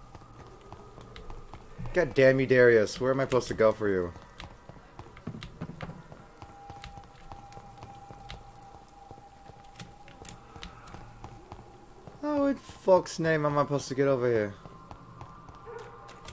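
Footsteps run over stone and wooden boards.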